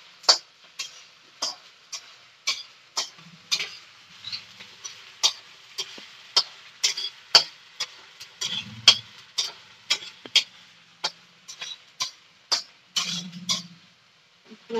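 A metal pan clinks and scrapes sharply over and over.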